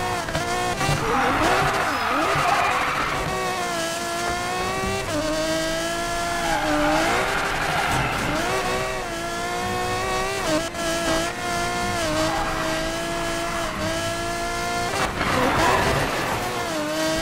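Tyres screech as a car drifts through bends.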